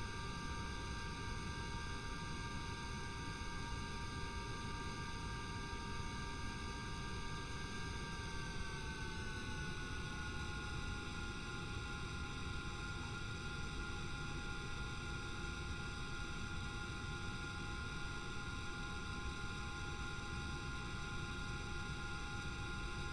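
Aircraft engines drone steadily, then drop slightly in pitch.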